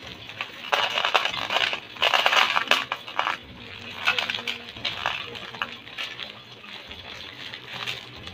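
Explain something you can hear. Small pebbles pour into a plastic container.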